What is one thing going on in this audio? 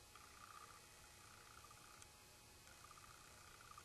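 A makeup brush softly brushes across skin.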